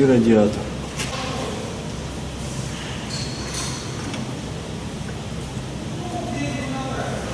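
Metal tools clink and scrape against engine parts.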